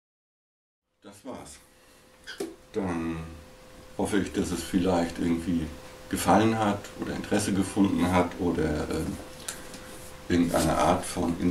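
A middle-aged man speaks calmly and close by.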